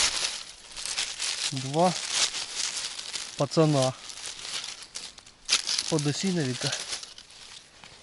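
Dry leaves rustle as mushrooms are pulled from the ground.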